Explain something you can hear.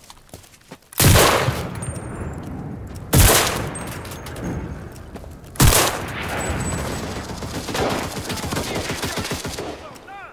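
A bolt-action rifle fires loud, sharp shots that echo with a long rumble.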